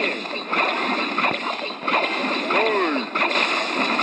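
A fireball whooshes and explodes with a blast.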